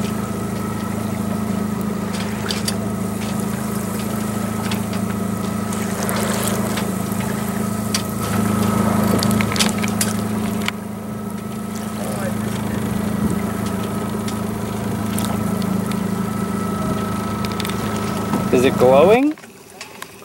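A boat engine hums steadily close by.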